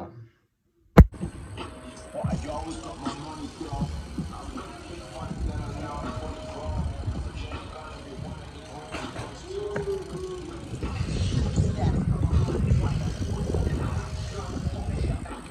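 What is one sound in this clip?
A bicycle rattles and clanks as a rider does tricks.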